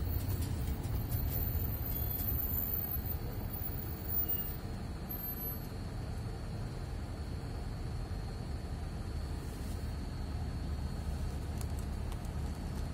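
A vehicle engine hums steadily from inside the cab.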